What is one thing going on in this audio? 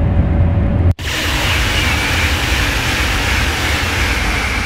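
A high-speed train rushes past with a loud whooshing roar.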